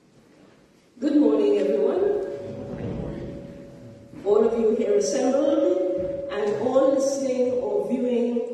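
A woman sings into a microphone in an echoing hall.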